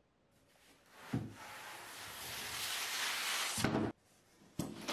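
A wooden board scrapes and slides against other boards.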